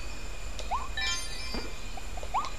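A bright chime rings as an item is collected in a game.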